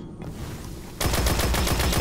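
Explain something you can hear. A rifle fires a burst of rapid shots.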